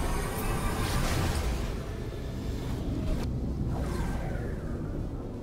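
A rushing whoosh swells as a spaceship jumps ahead.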